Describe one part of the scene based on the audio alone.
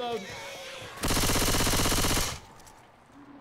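A gun fires a rapid burst.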